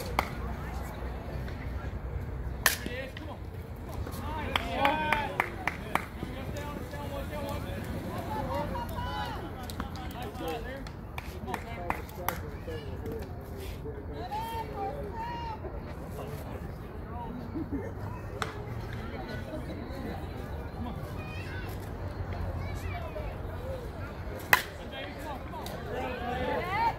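Men and women call out and cheer at a distance outdoors.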